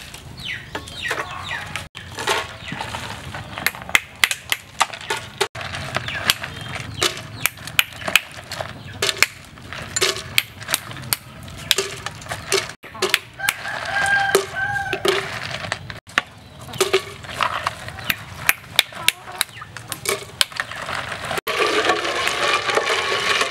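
Ice cubes clink and knock against a glass jar.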